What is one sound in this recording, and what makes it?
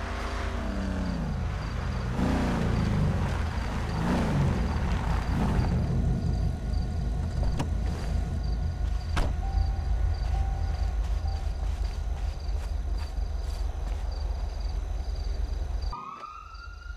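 Car engines rumble as cars drive up slowly.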